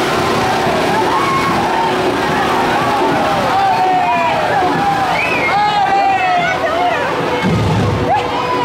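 A crowd of men and women chatter and shout outdoors.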